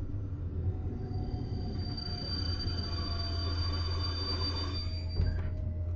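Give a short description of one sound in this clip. Train brakes squeal with a steady high whine.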